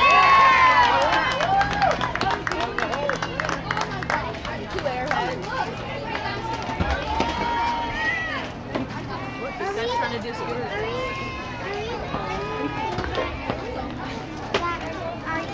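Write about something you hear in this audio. Young girls shout and cheer outdoors across an open field.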